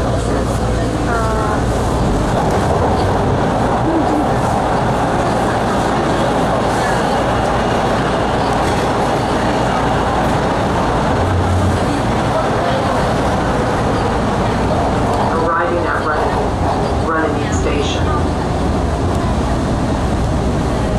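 A train rumbles and roars steadily through a tunnel.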